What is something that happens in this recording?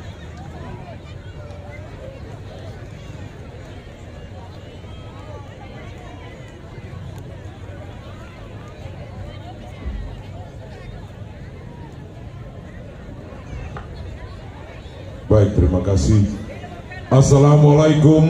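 A large outdoor crowd murmurs in the background.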